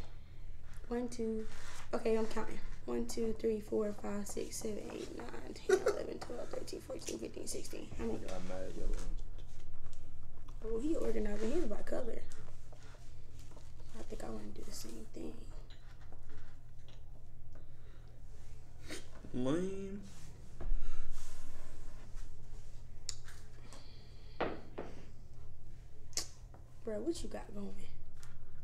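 Cards slap and shuffle on a table.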